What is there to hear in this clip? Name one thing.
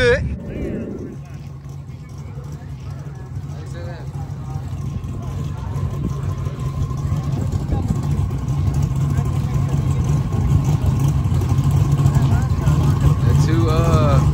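A car engine idles with a deep, throbbing rumble that grows louder.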